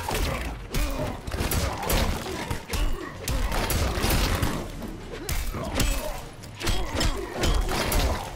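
Heavy punches and kicks thud in quick succession.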